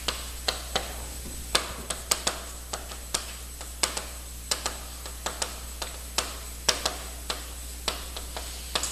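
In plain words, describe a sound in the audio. Chalk taps and scrapes sharply on a board.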